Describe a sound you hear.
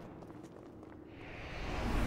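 A magical force swirls with a low, rushing whoosh that grows louder.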